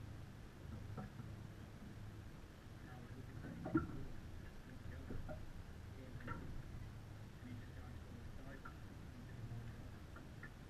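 Sailing gear on deck clicks and knocks now and then.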